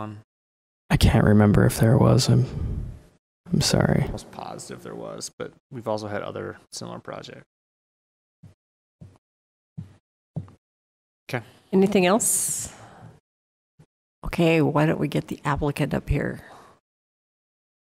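A woman speaks through a microphone in a meeting, with pauses.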